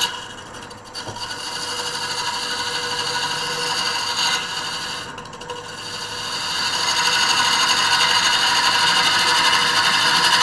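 A gouge scrapes and hisses against spinning wood.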